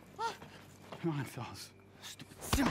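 A young man answers calmly.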